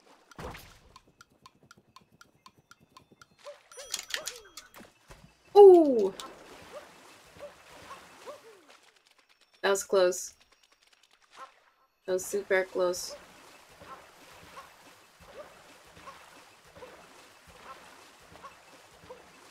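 Video game sound effects chime and whoosh as a character runs and jumps.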